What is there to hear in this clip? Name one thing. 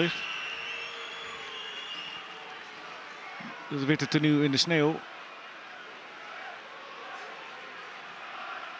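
A large stadium crowd murmurs steadily in the open air.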